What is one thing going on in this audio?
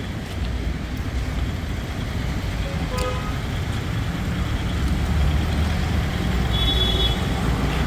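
A man's footsteps scuff along pavement outdoors.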